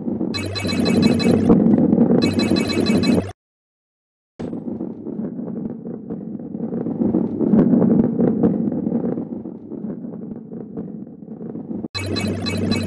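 A ball rolls and rumbles steadily along a track.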